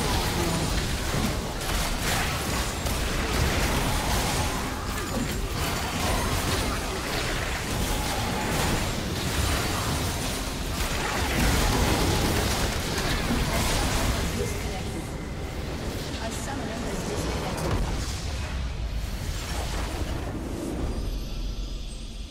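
Video game battle sound effects clash with spell blasts and hits.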